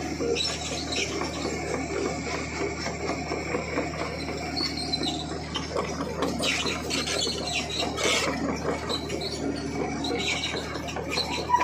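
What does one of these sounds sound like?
A vehicle rattles and bumps over a rough dirt road.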